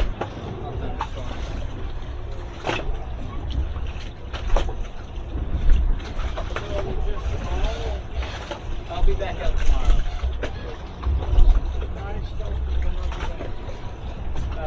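Ropes and fittings knock and clatter against a boat.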